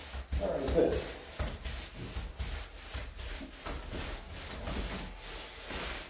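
A paint roller rolls softly over a wall.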